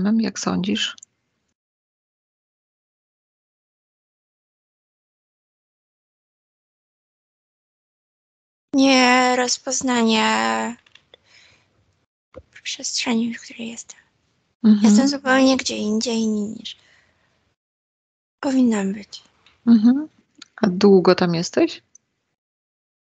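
A woman speaks calmly over an online call, in bursts with long pauses.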